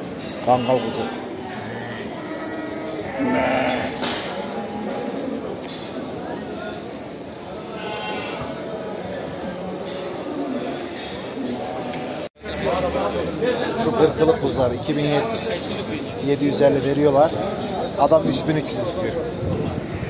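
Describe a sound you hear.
Many sheep bleat loudly and close by.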